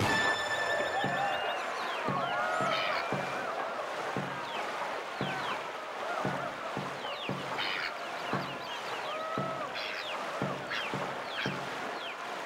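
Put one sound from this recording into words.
Paddles splash into water in a steady rhythm.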